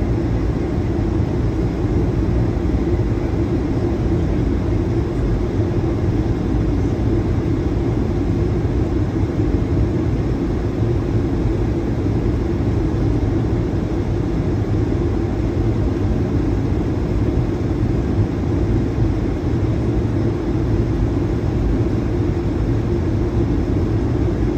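An airliner's engines roar steadily from inside the cabin.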